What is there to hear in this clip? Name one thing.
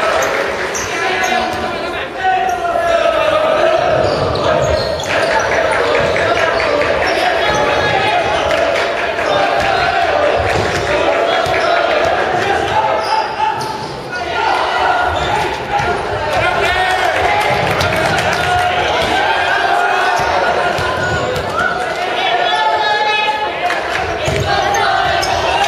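Young men shout and cheer in an echoing gym.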